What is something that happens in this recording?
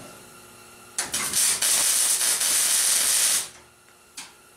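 An arc welder crackles and sizzles loudly.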